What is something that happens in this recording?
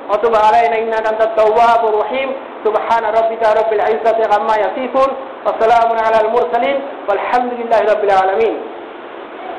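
A man chants in a drawn-out, melodic voice.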